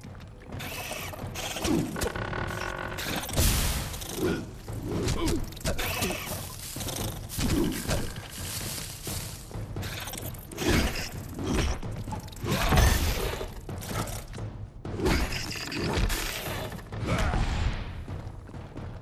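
A heavy hammer strikes with loud thuds.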